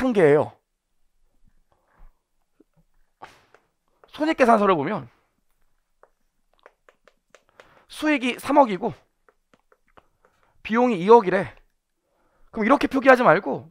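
A man speaks calmly in short phrases through a microphone, with pauses between them.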